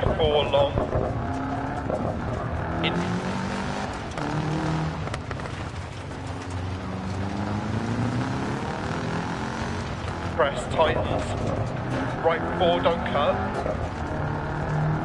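A rally car engine roars and revs up and down.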